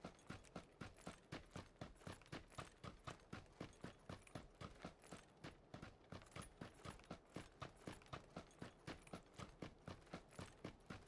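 Footsteps crunch quickly and evenly on dry ground.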